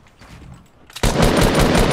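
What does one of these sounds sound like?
Rapid game gunfire crackles loudly.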